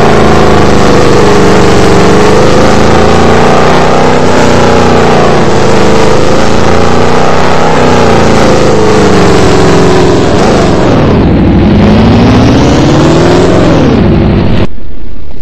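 A car engine revs and hums steadily, its pitch rising and falling as it speeds up and slows down.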